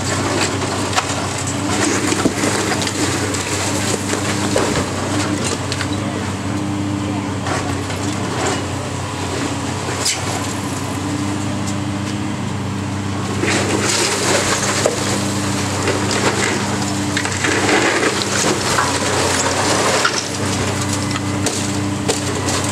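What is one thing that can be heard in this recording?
A heavy excavator engine rumbles steadily.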